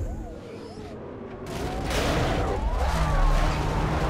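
A car crashes into a police roadblock.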